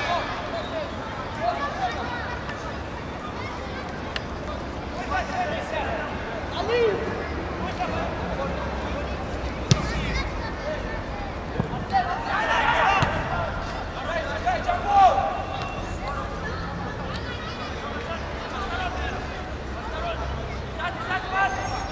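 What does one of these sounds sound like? Players shout to each other across an open pitch outdoors.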